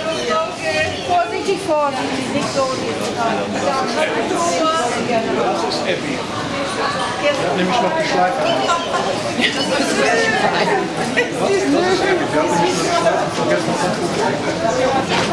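Several women talk excitedly close by.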